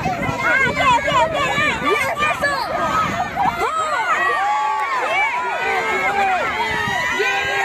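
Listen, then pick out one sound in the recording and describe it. A crowd of adults cheers and calls out nearby.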